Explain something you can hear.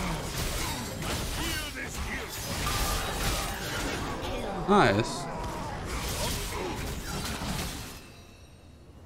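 Video game spell effects crackle and clash in a fight.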